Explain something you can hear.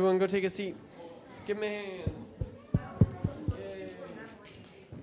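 Children's footsteps thump on a wooden floor.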